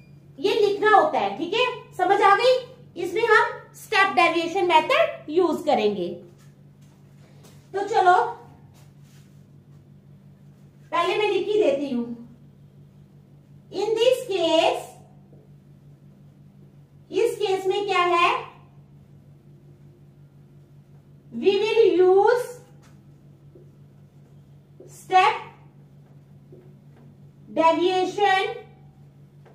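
A woman speaks calmly and clearly close by, explaining in short phrases with pauses.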